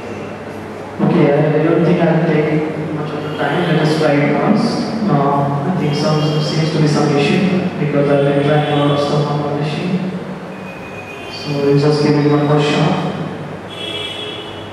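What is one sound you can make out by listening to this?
A man speaks with animation, close by, in an echoing room.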